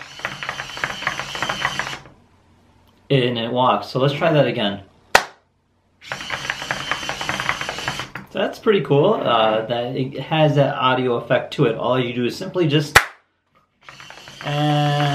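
Small motors of a toy robot whir and buzz in bursts.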